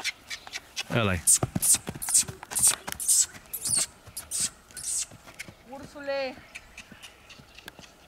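Horse hooves thud on dry ground.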